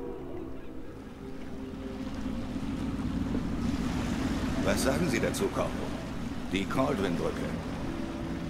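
A boat motor rumbles steadily.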